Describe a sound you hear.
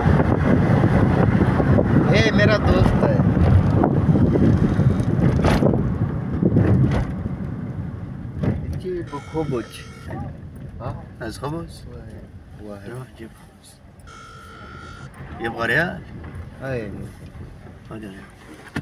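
A car engine rumbles low and steady while driving.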